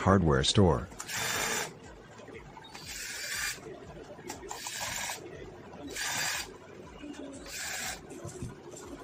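A cordless screwdriver whirs in short bursts, driving screws.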